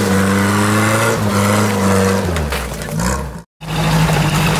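An off-road four-wheel drive's engine revs.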